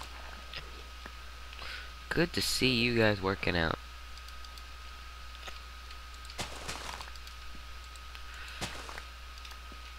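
Crops snap and rustle as they are broken.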